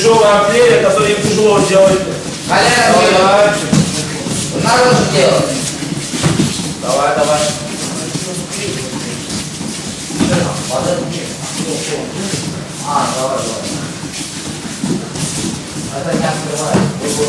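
A man speaks loudly and with animation, giving instructions in a room with some echo.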